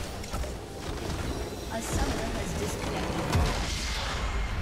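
A crystal structure shatters and explodes with a deep rumbling boom.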